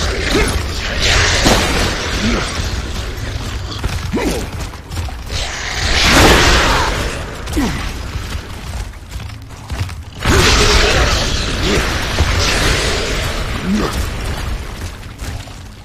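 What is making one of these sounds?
Heavy boots thud on a hard floor.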